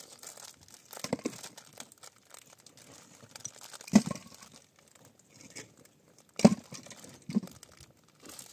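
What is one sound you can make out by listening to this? Blocks and rubble knock and clatter.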